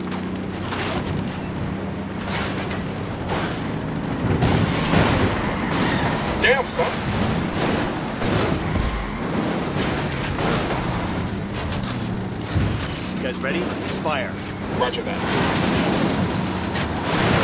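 A pickup truck engine drones steadily.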